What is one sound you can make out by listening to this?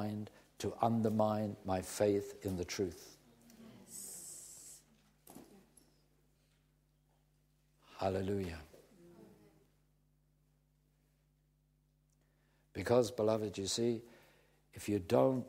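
An elderly man speaks calmly and clearly into a microphone, with pauses.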